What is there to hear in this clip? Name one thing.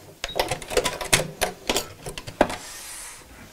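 A sewing machine runs with a fast rattling stitch.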